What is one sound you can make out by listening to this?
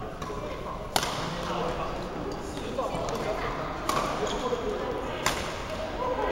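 Shuttlecocks are struck with sharp pops of rackets.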